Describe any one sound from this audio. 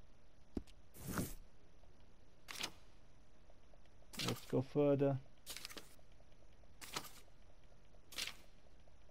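Pages of a paper catalogue turn with short rustling flips.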